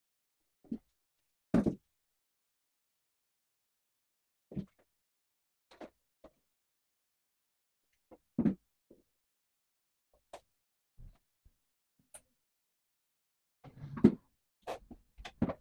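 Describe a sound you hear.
Hard plastic parts knock and clatter as they are handled.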